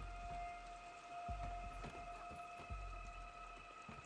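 Boots thud on wooden porch boards.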